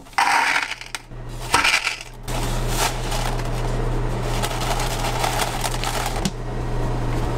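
Dry spaghetti rattles into a plastic container.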